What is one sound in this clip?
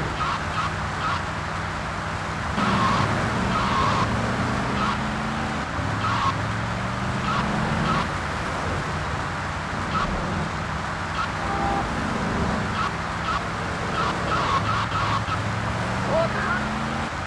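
A car engine hums and revs steadily throughout.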